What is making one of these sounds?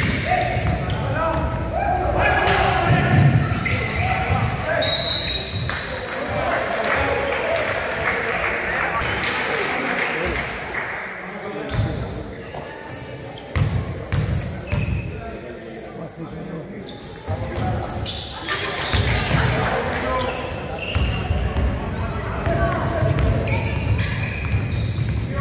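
Spectators chatter and shout in a large echoing gym.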